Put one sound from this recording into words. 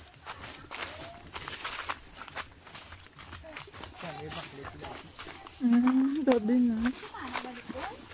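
Footsteps crunch on dry leaves and twigs along a trail.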